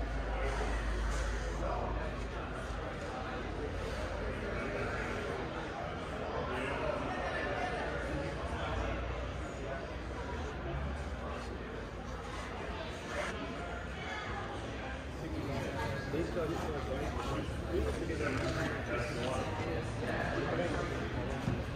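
Several men and women chatter in the background of a large echoing hall.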